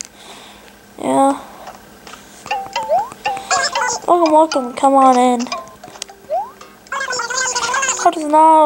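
A handheld video game plays bright chiming sounds and chirpy babbling tones.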